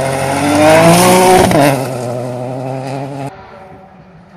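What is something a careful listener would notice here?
A rally car races past at full throttle on gravel.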